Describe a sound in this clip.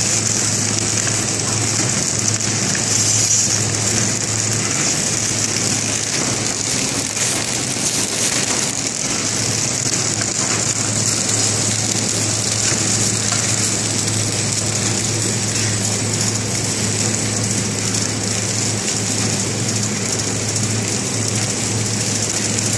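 Sheets of plastic film rustle and slide along a conveyor.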